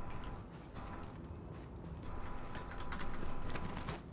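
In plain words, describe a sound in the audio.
Boots thump on a metal container.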